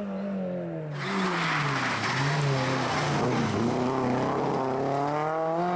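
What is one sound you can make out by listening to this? Gravel sprays and hisses under spinning tyres.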